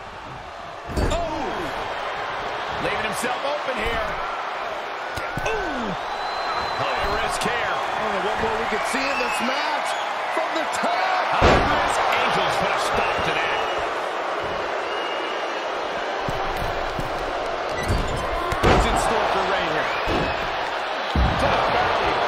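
Heavy bodies slam hard onto a ring mat with loud thuds.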